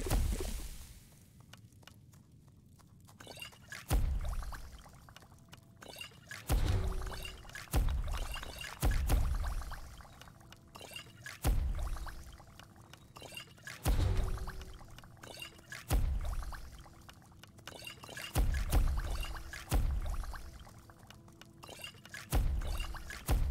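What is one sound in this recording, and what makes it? Soft thuds and chimes from a game menu sound as items are picked.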